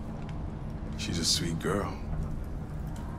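A man speaks softly and warmly.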